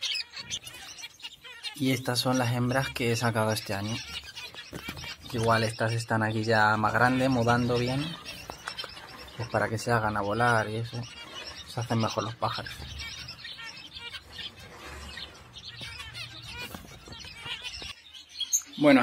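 Small finches chirp and peep in a cage.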